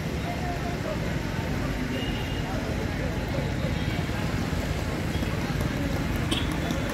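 A crowd of men talks and murmurs at a distance outdoors.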